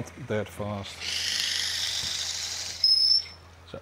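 A gouge cuts into spinning wood with a steady hiss.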